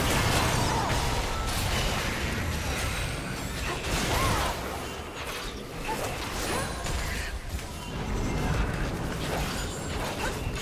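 Small impacts and hits clatter rapidly.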